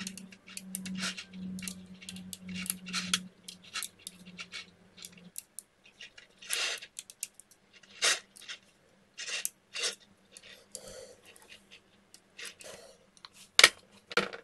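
Small metal magnetic balls click and snap together between fingers.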